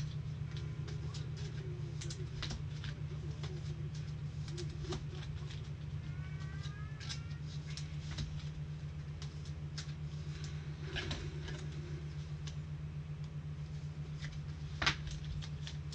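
Cards and plastic cases click and rustle close by.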